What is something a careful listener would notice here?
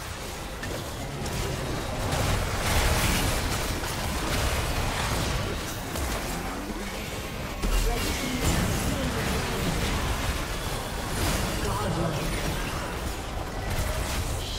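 Game sound effects burst with impacts and blasts.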